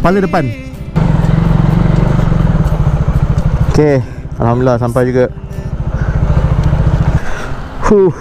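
A motorcycle engine idles with a rapid, throbbing putter.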